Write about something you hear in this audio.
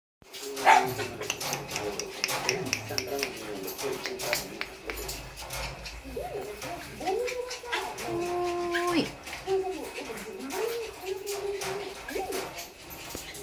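A puppy's claws tap and scrabble on a rubber mat.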